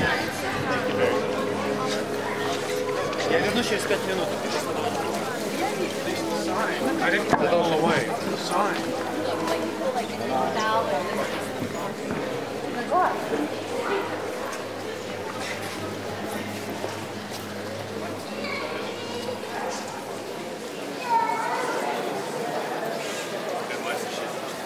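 A crowd of people chatters nearby, echoing off stone walls.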